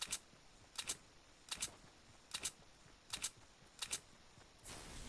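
Quick footsteps patter in a steady rhythm.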